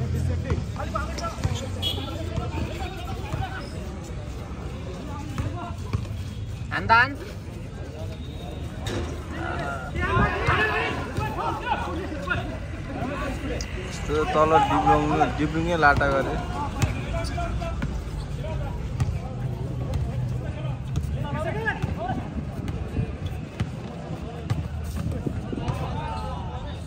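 A basketball bounces on hard ground.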